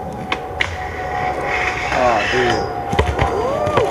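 A skateboard slams onto the ground.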